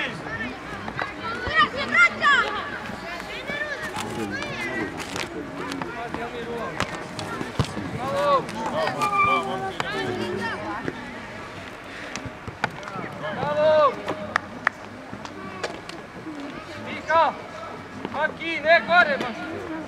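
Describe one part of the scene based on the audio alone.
Young players shout and call out across an open field outdoors.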